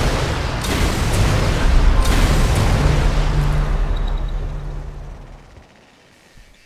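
A large explosion booms and rumbles away.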